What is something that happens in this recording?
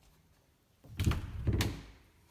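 A door bumps with a low thud.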